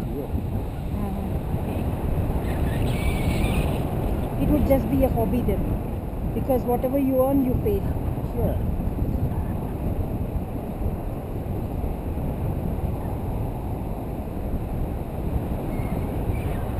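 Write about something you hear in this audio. Strong wind rushes and buffets steadily past close by.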